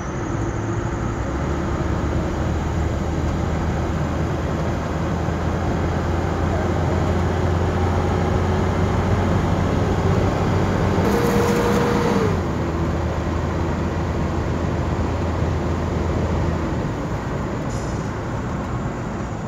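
A vehicle engine hums steadily from inside the cabin.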